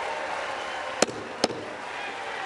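A gavel bangs sharply twice.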